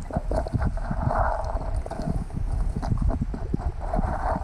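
Hands scrape and stir sediment on the seabed.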